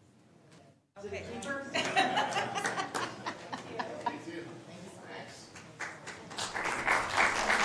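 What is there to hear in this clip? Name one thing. A small group claps their hands in applause.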